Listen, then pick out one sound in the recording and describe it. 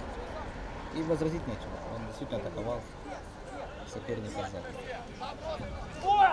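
Young men call out to each other outdoors on an open field.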